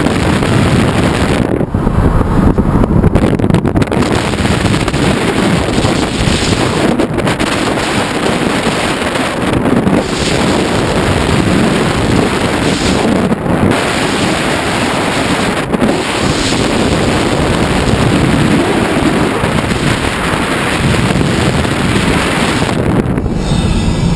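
Wind rushes loudly past an open car window at speed.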